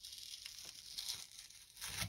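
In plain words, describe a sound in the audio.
Hands shift a wooden frame on a table, rustling and knocking.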